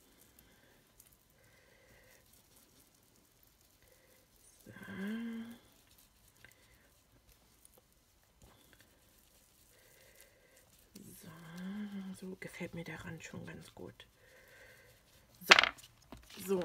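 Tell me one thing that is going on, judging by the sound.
A foam ink tool rubs and dabs softly on paper.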